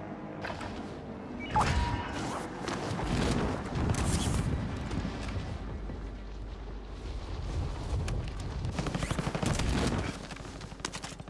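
Wind rushes loudly during a fall through the air.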